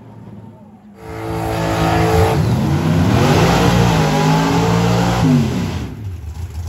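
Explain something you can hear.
A race car engine revs hard and sharply, rising and falling, in a burnout.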